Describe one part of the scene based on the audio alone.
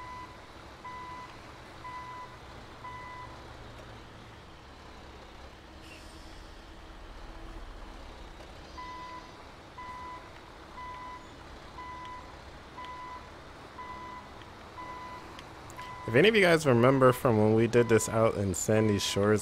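A truck engine rumbles at low speed.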